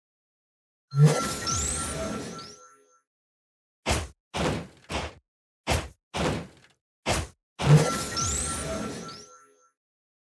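A warning alarm sounds.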